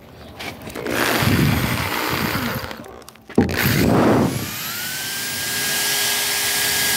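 A power drill whirs as it bores into wood.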